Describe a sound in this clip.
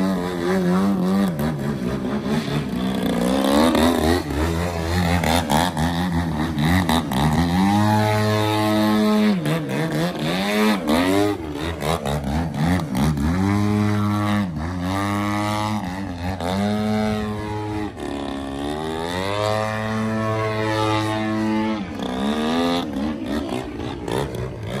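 A model plane's engine whines loudly, rising and falling in pitch as it swoops and hovers.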